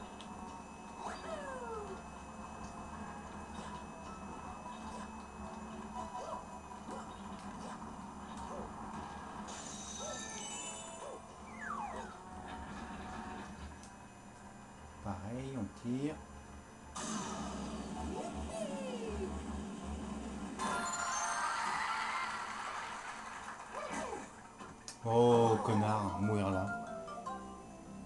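Video game sound effects whoosh and chime through a television speaker.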